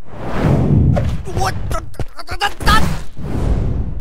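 Flames burst with a roar.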